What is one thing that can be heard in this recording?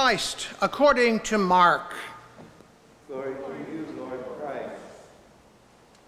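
A middle-aged man speaks calmly into a microphone, his voice echoing in a large hall.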